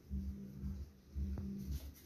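A palette knife scrapes softly across canvas.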